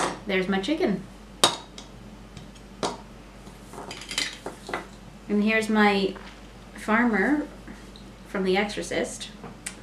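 Plastic toy blocks click together in a woman's hands.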